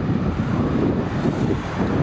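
A van drives past on the road nearby.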